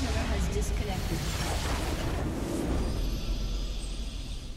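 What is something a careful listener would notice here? A structure explodes with a deep boom.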